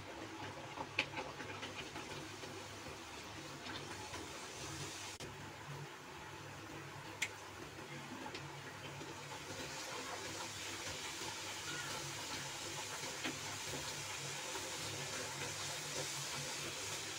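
A metal strainer clinks against a pan.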